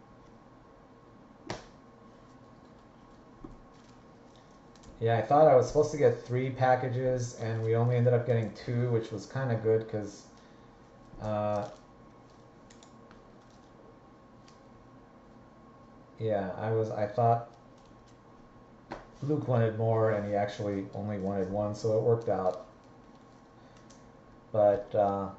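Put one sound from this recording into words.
Trading cards rustle and tap as they are handled.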